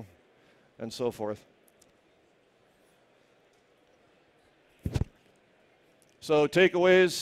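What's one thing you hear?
A man speaks calmly into a microphone in a large hall, with pauses.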